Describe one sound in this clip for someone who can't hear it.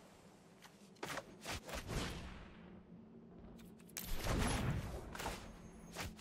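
Digital game effects whoosh and chime as cards are played.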